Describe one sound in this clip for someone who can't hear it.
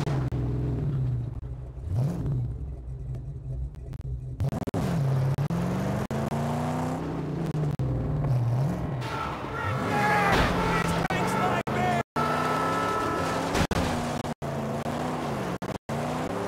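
A car engine roars and revs as it drives over sand.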